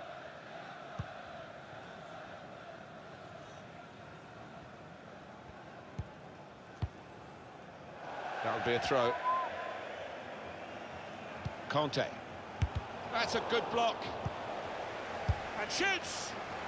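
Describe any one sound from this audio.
A large stadium crowd murmurs steadily, growing louder partway through.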